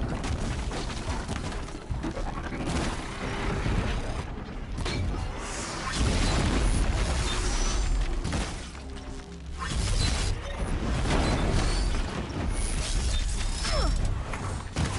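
A bowstring twangs as arrows are loosed.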